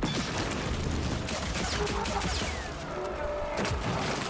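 Blades slash and clang against a creature.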